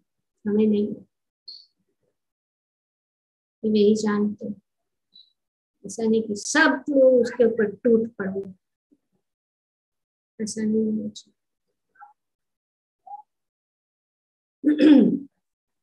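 An elderly woman speaks calmly in short phrases over an online call.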